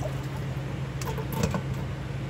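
A metal jar lid clinks against a metal pot.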